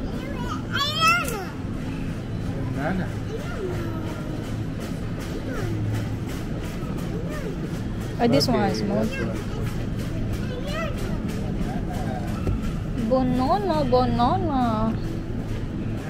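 A young girl squeals and chatters excitedly close by.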